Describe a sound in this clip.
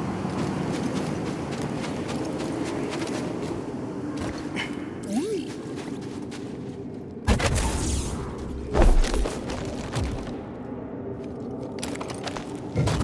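Wind howls steadily outdoors.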